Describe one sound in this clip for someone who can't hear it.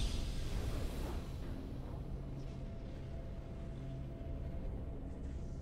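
Triumphant game music plays.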